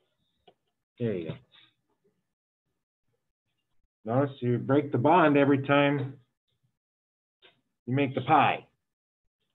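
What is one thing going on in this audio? A man speaks calmly through a microphone, in short bursts.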